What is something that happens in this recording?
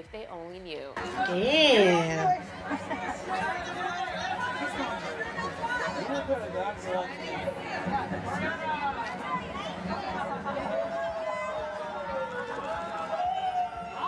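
A crowd chatters noisily at an event.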